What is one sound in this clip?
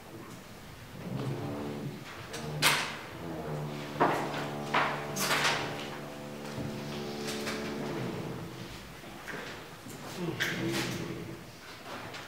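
An elderly man speaks calmly in a room with a slight echo.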